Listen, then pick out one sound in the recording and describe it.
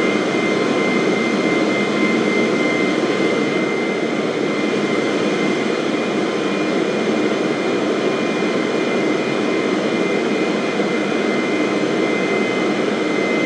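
Jet engines roar steadily as an airliner cruises.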